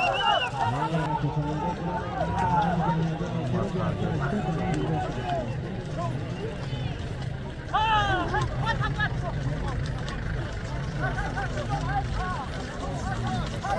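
A crowd of men on horseback shout loudly outdoors.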